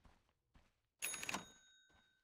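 A magical spell bursts with a bright ringing chime.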